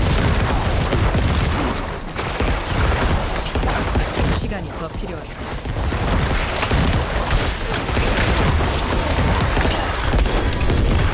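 Dense game combat sounds of slashing hits and bursting blows play without a break.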